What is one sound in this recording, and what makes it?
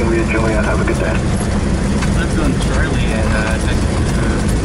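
A young man speaks briefly over a headset radio.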